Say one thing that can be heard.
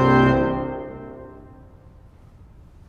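A pipe organ chord ends and rings out in a large echoing hall.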